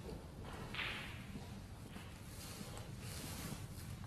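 A snooker ball is set down softly on the table cloth.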